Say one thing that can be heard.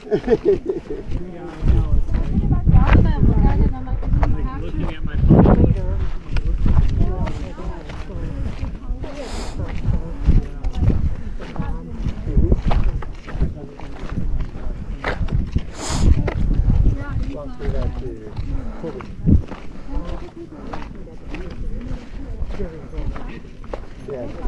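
Footsteps crunch on a sandy dirt trail.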